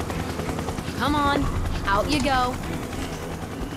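A young woman speaks casually nearby.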